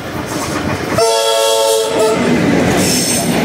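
A train sounds a loud horn briefly.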